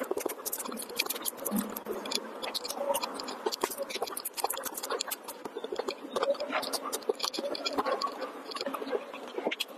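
A young woman chews food with crisp, wet, smacking sounds close to a microphone.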